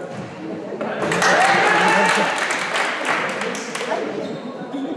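A group of young men shout together in a cheer.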